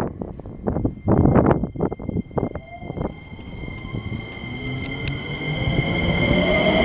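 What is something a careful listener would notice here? An electric train motor hums and whines, rising in pitch.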